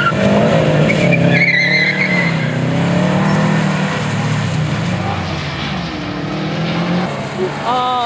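A car engine revs hard and drones steadily.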